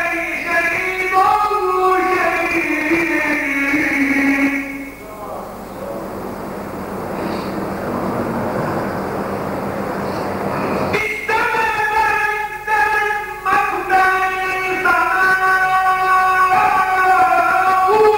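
A middle-aged man chants loudly through a microphone in long, drawn-out notes.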